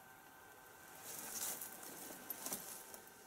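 A man's clothing rustles softly close by.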